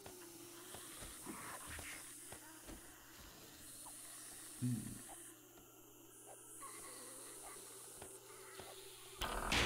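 Soft interface clicks sound as items are moved between slots.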